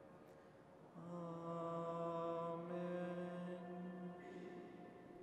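A man chants in a steady, sustained voice through a microphone in a large echoing hall.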